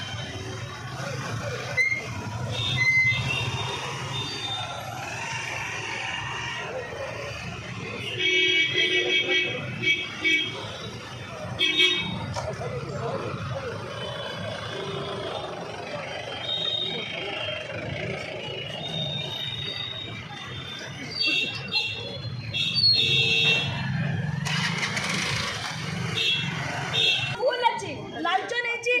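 Motorbike engines idle and rumble nearby.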